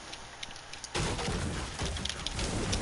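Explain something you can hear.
A pickaxe strikes a tree trunk with a hard knock.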